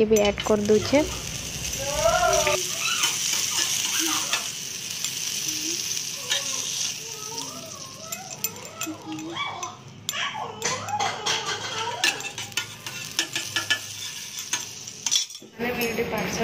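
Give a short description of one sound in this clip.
Butter sizzles on a hot griddle.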